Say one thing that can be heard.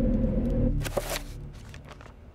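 A menu whooshes open with a short swish.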